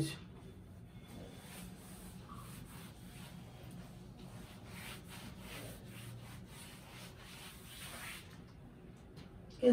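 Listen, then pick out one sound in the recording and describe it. A cloth rubs and wipes across a board.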